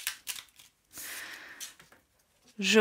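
A card is slid onto a table.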